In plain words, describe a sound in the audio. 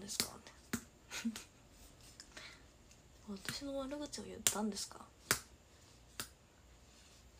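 A young woman speaks softly and casually, close to a microphone.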